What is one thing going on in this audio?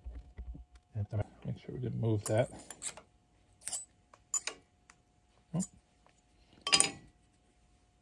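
Small metal parts clink and rattle in someone's hands.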